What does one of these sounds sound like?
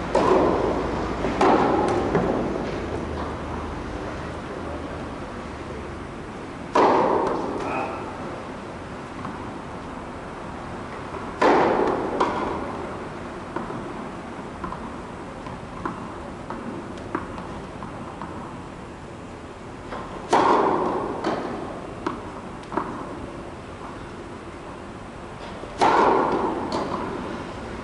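Tennis balls are struck with rackets, ringing through a large echoing hall.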